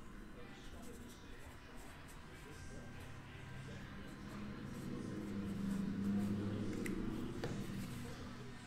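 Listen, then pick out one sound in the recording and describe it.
A marker pen squeaks faintly across a card.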